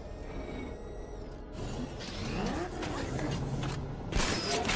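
A powerful engine rumbles and revs.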